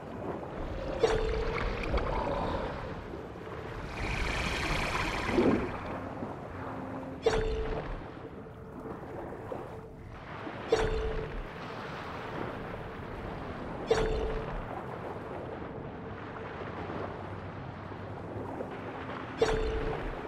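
Sharp swimming strokes surge through the water every few seconds.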